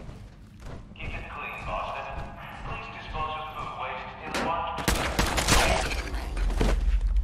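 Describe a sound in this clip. A creature snarls and growls close by.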